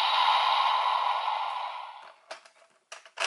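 A toy sword plays a loud electronic sound effect that fades out.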